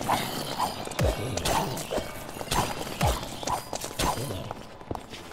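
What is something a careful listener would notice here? Blows thud repeatedly against zombies in a video game.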